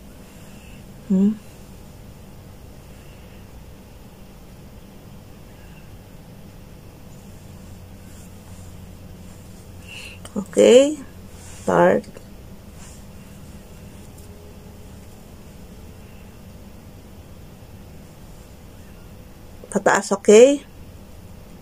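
A young woman speaks briefly in short bursts, close by.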